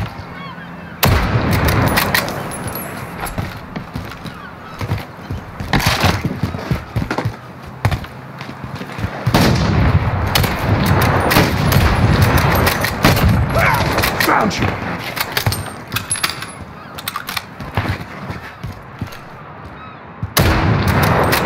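Sniper rifle shots crack loudly with a ringing echo.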